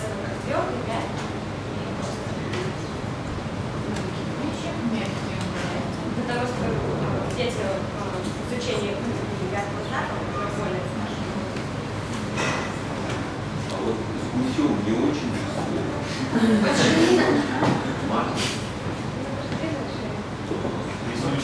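A young woman speaks calmly into a microphone in a room with a slight echo.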